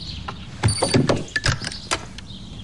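A hand slaps down on an alarm clock.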